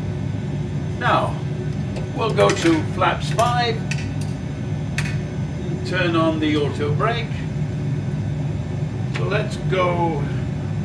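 An elderly man speaks calmly nearby.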